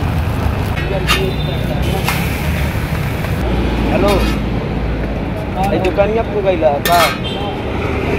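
A metal spatula scrapes and taps against the griddle.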